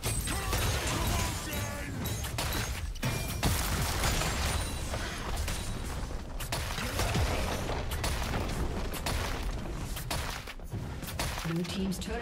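Computer game combat effects crash, swish and thud.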